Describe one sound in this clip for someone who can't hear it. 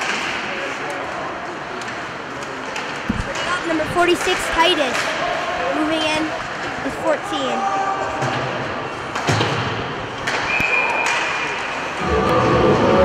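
Skate blades scrape and hiss across the ice in an echoing rink.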